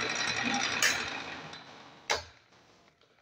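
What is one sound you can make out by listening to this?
A drill press motor winds down and stops.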